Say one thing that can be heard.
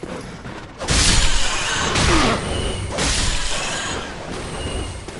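A magic blast crackles and booms loudly.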